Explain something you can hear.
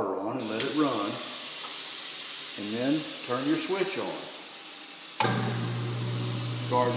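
Water pours steadily from a tap into a metal sink.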